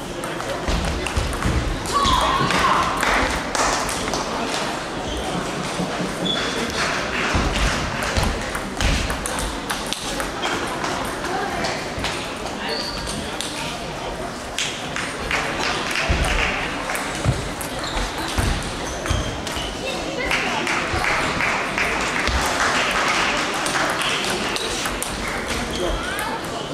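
Table tennis balls click sharply against paddles and tables.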